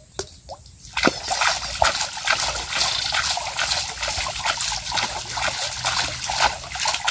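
Water splashes and drips as a trap is pulled from a pond.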